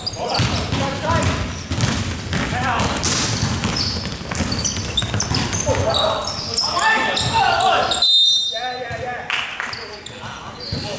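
Young men shout and call out to each other from across the hall.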